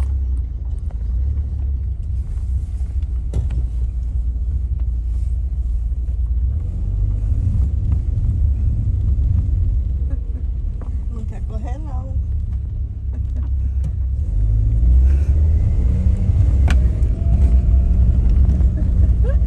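A car engine rumbles low and steadily nearby.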